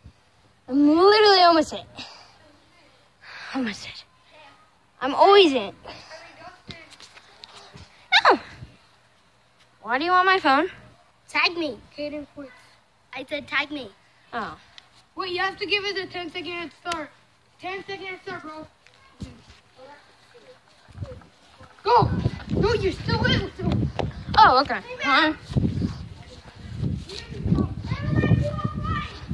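A young boy talks and sings loudly and excitedly, close by.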